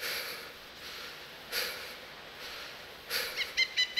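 Leafy branches rustle as someone pushes through a bush.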